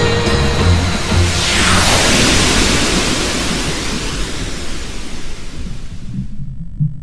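A loud magical blast whooshes and slowly fades.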